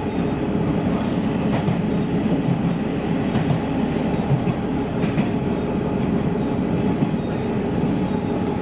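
Train wheels clack on the rails.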